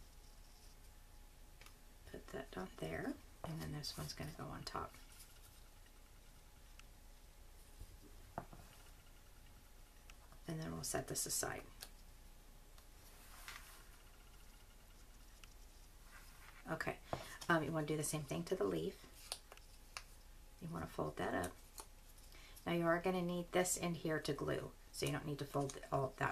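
Paper rustles and crinkles softly as it is folded and pressed.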